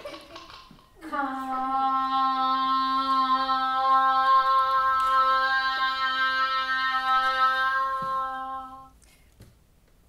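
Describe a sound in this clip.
A long horn sounds a steady low note.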